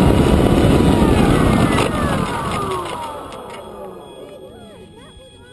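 A drone's propellers whir loudly up close and wind down, falling in pitch.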